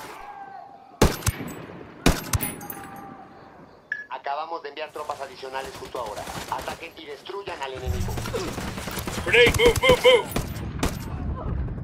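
A rifle fires single sharp shots.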